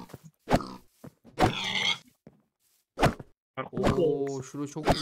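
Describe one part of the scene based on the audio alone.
A sword strikes with sharp thuds.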